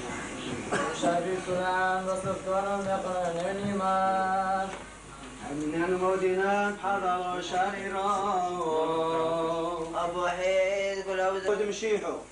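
A man chants a prayer in a deep, steady, sung voice.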